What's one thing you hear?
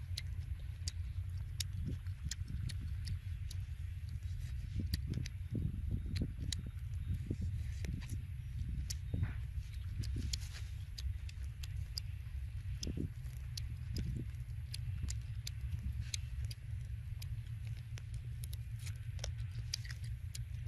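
A man chews and crunches food close by.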